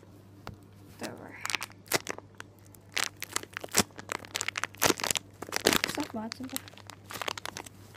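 A plastic bag crinkles and rustles in someone's hands.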